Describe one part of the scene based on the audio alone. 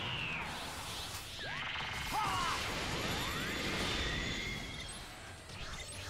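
Energy blasts whoosh and explode loudly.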